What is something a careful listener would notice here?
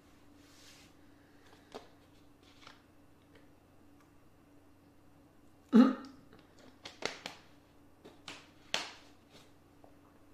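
A plastic water bottle crinkles in a hand.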